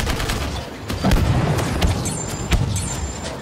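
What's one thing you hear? Explosions boom loudly.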